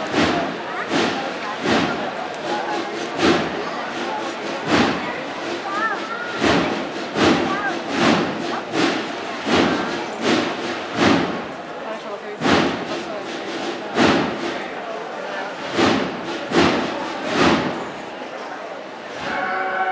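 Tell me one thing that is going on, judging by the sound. A crowd murmurs and chatters close by outdoors.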